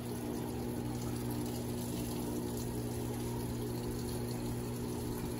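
Water pours steadily into a washing machine drum.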